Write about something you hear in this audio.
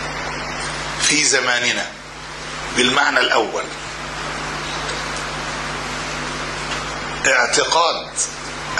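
An elderly man speaks calmly into a microphone, in short bursts.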